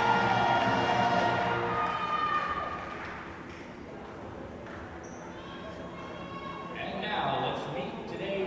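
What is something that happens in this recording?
A group of young women cheer together in a huddle in an echoing gym.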